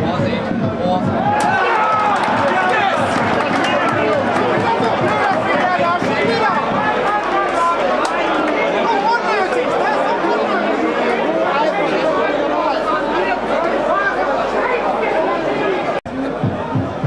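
A large crowd cheers and sings loudly outdoors.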